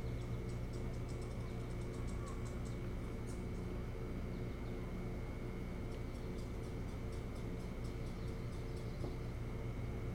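An osprey chirps in short, high repeated calls.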